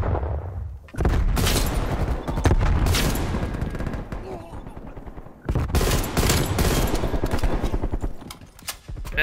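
Rifle shots fire in loud bursts.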